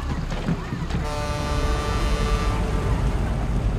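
A ship's horn sounds a long, steady blast.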